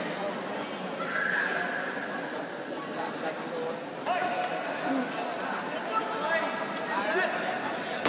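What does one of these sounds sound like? Fighters shout sharply as they spar.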